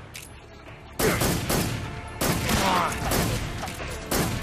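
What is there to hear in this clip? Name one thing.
A grenade explodes with a heavy boom.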